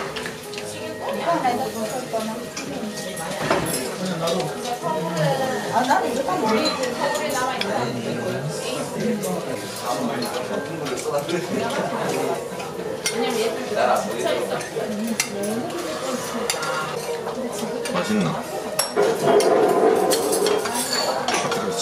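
A young woman chews food with smacking sounds.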